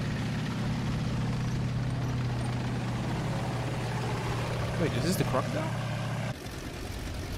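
A tank engine rumbles steadily as the tank rolls forward.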